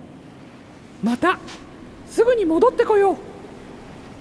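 A man speaks cheerfully in a high, squeaky cartoon voice.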